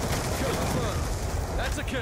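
Automatic gunfire rattles in quick bursts.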